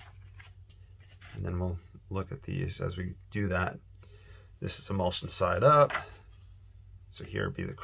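A thin plastic sheet slides and rustles softly on a surface.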